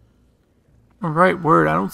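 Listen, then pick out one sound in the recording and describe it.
A young man exclaims loudly, close to a microphone.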